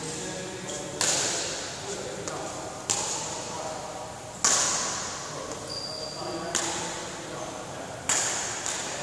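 Shuttlecocks are struck with rackets, each hit ringing out in a large echoing hall.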